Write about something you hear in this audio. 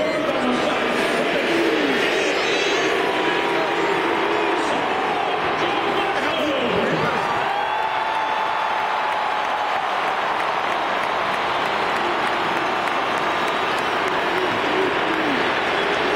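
Spectators nearby shout and whistle.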